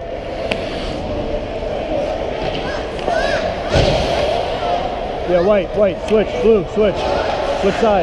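Hockey sticks clack against the ice and the puck.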